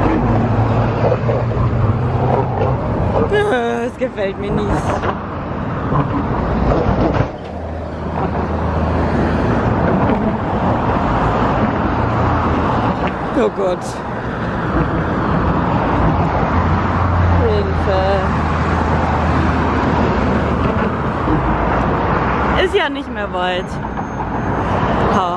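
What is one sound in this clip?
Traffic roars past steadily close by outdoors.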